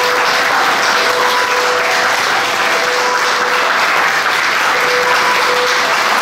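A piano plays in a room with some echo.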